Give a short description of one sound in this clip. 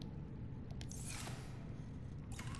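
A locker door slides open with a soft whoosh.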